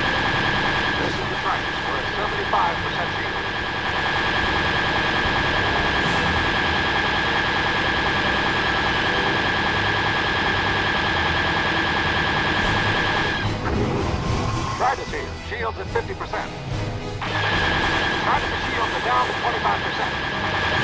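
Laser cannons fire in quick bursts.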